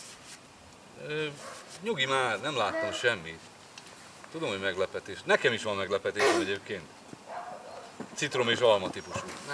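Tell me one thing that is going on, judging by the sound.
Men talk and laugh nearby outdoors.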